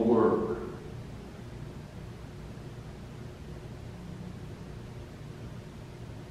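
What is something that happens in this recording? An elderly man speaks calmly, heard through a room microphone.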